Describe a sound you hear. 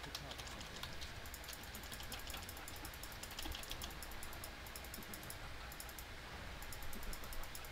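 Magic spells crackle and whoosh faintly.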